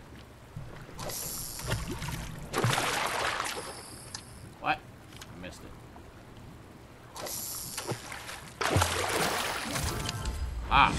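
Water splashes as a fishing line is cast.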